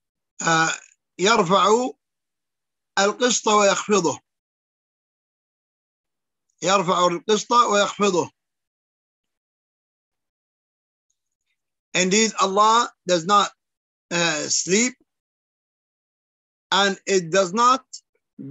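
An elderly man speaks calmly in short phrases with long pauses, heard through an online call.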